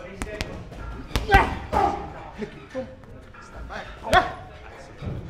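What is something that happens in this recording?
Gloved punches thud against a heavy punching bag.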